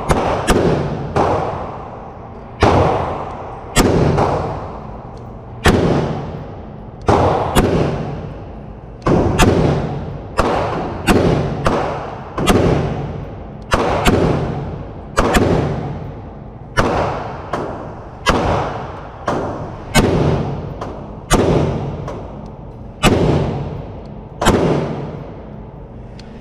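A rifle fires loud shots one after another, echoing through an indoor range.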